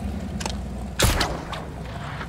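A grappling gun fires with a sharp crack.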